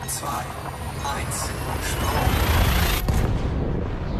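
A loud rushing whoosh rises and then cuts off.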